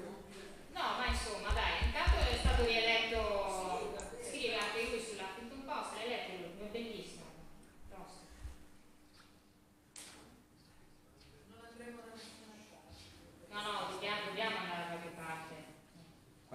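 A young woman speaks calmly through a microphone and loudspeaker in an echoing hall.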